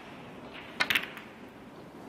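Snooker balls click together.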